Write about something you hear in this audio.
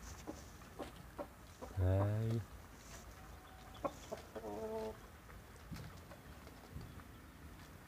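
Young chickens peck at food with quick tapping sounds.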